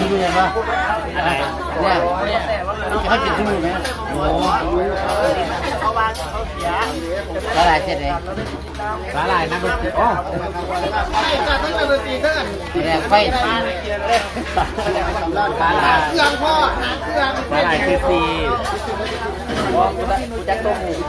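A middle-aged man talks and laughs cheerfully close by.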